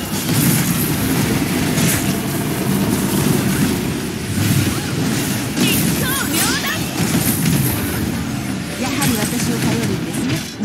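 Electric blasts crackle and boom in quick succession.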